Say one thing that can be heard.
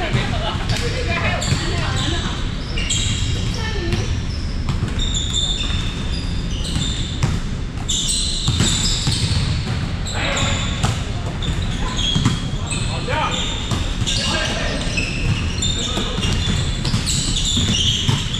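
Sneakers squeak sharply on a hard floor, echoing through a large hall.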